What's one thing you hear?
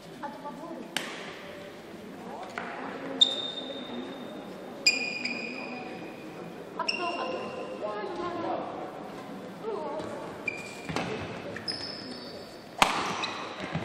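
A shuttlecock is struck sharply back and forth with rackets.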